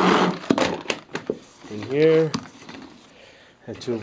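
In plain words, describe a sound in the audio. A mop head spins and rattles in a plastic bucket.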